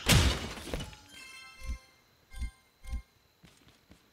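Items are picked up with short popping chimes.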